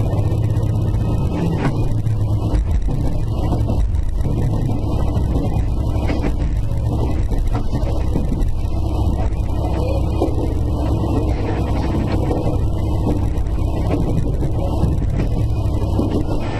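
Train wheels clatter over the rails and joints.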